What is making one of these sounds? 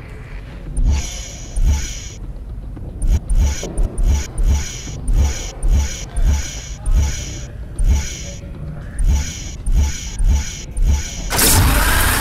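Menu selection clicks sound quickly one after another.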